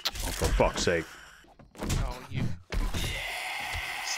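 A hammer thuds against flesh.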